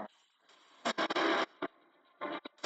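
Sparks burst and crackle loudly.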